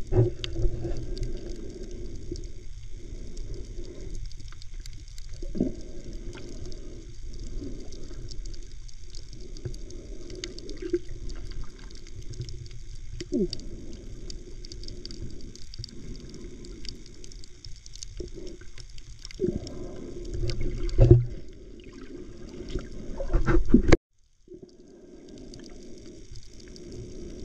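Water sloshes and rumbles with a muffled underwater sound.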